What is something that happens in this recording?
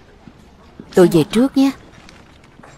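A young man speaks briefly and lightly.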